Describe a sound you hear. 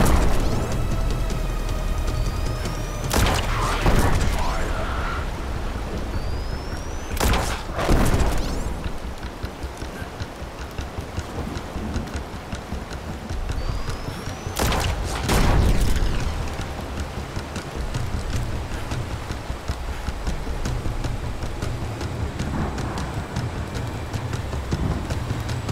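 A young woman talks near a microphone.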